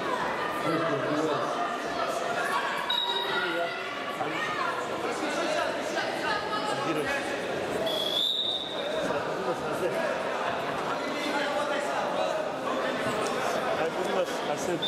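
Spectators shout and chatter in a large echoing hall.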